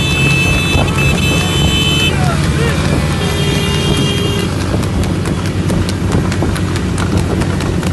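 A motorbike engine hums nearby.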